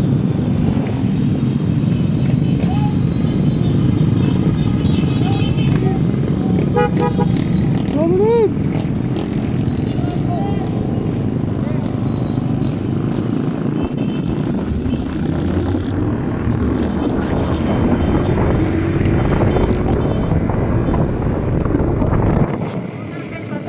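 A motorcycle engine rumbles steadily up close while riding.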